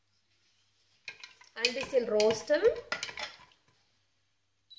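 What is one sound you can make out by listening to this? A wooden spoon scrapes and stirs nuts in a metal pot.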